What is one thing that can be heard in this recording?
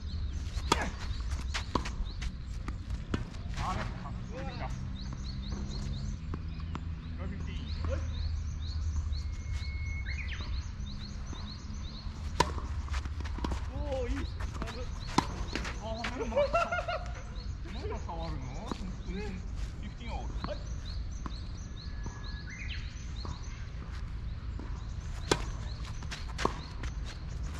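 A tennis ball is struck with a racket with sharp pops.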